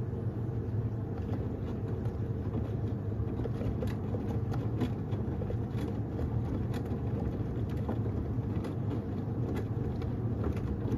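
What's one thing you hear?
Laundry thuds and clicks against the drum of a washing machine.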